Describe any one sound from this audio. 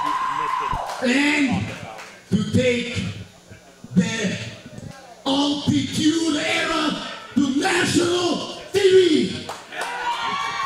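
A man shouts forcefully into a microphone, heard through loudspeakers in an echoing hall.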